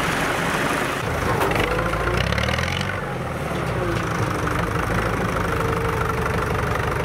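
A harvesting machine rumbles and clatters over a field.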